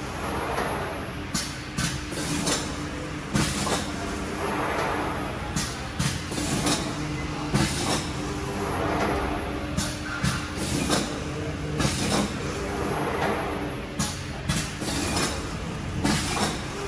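A large machine hums steadily.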